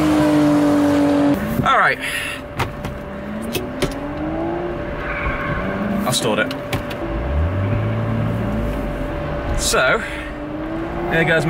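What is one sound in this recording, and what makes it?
A car engine revs loudly, rising and falling.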